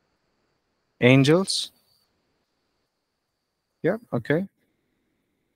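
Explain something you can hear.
A young man speaks briefly and calmly into a headset microphone over an online call.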